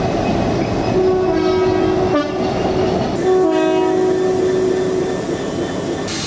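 A train sounds a two-tone horn.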